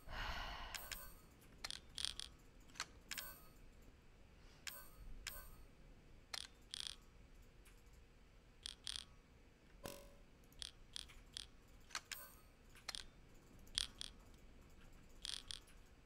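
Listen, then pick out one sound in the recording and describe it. Short soft clicks of menu selections sound again and again.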